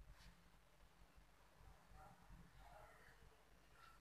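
A marker squeaks faintly on paper.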